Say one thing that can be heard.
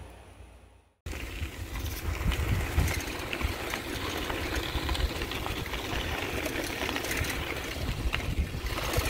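Wind and road noise rush past steadily outdoors.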